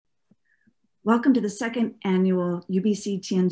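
A middle-aged woman speaks warmly and with animation into a microphone, as if over an online call.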